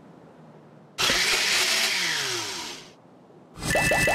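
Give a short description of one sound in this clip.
A blender whirs loudly for a moment.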